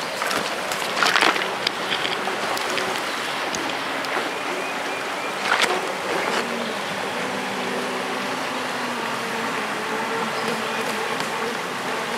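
Something splashes into the water nearby.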